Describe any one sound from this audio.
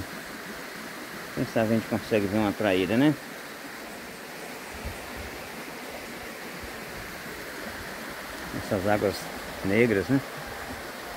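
A stream ripples and splashes steadily over rocks.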